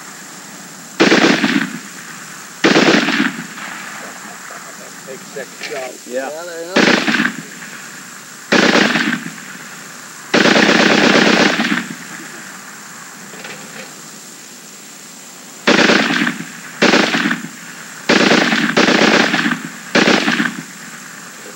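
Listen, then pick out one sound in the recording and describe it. A machine gun fires loud bursts outdoors, echoing across open fields.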